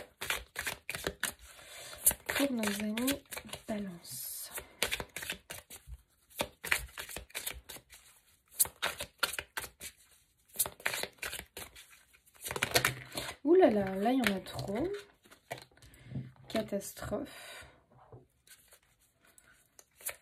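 Playing cards flutter and slap as they are shuffled by hand.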